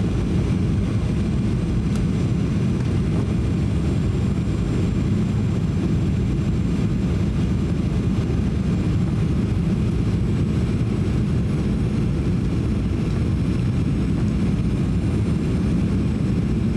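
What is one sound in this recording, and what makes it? A twin-engine jet airliner's engines and airflow roar low and steady inside the cabin on final approach.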